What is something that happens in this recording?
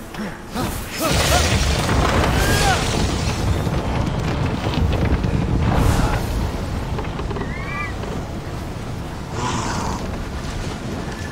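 Rushing wind whooshes past during a glide.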